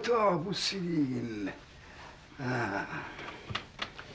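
An elderly man speaks slowly and gravely, close by.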